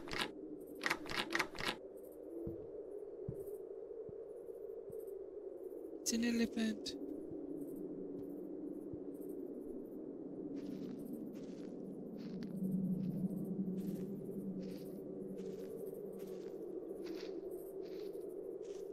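Footsteps crunch on stone paving.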